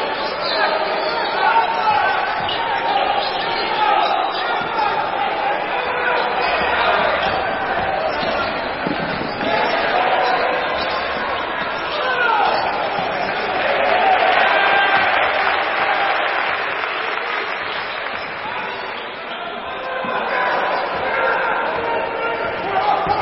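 Spectators murmur and call out in the hall.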